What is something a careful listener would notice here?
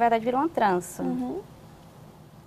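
A woman speaks close by in a lively voice.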